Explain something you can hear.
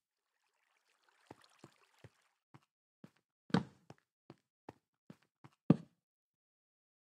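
Footsteps patter softly on stone.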